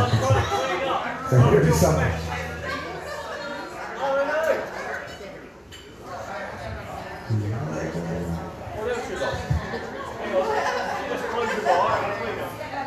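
An older man talks into a microphone, heard through loudspeakers.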